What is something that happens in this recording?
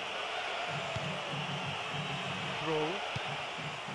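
A ball is kicked with a dull thud.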